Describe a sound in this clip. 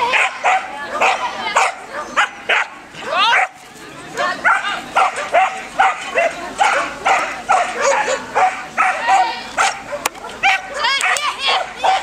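A dog barks excitedly again and again.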